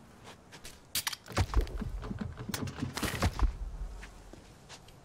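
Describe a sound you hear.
Heavy blows thud and crash in quick succession.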